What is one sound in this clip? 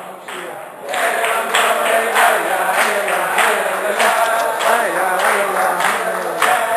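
A crowd of men sing and shout together in a large echoing hall.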